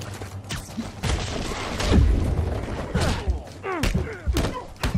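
Punches land with heavy thuds in a fight.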